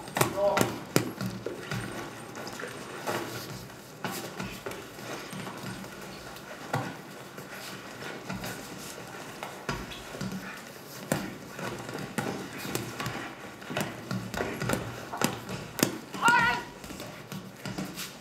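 Bodies scuffle and thump on a padded mat.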